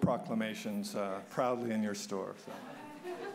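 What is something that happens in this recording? A man speaks through a microphone in a large echoing room.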